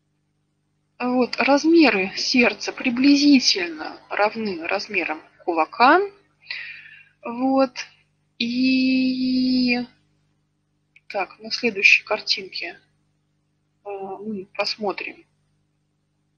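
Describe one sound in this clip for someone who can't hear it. A young woman speaks calmly through an online call.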